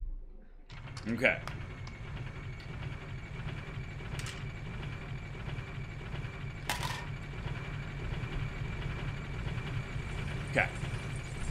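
A heavy lift rumbles and creaks steadily on its chains.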